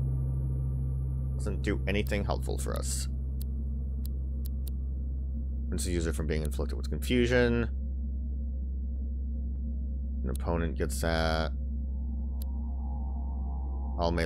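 Short menu clicks sound as a selection moves through a list.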